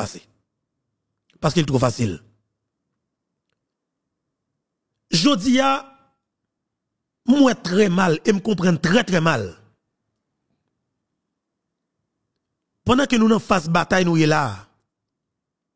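A man speaks close into a microphone in short, animated bursts with long pauses.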